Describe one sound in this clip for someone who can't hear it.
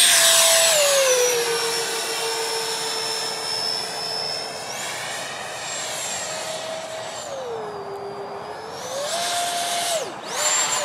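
A jet engine roars loudly overhead, its whine rising and falling in pitch.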